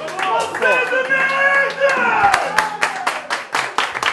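A crowd of men shouts and cheers loudly nearby.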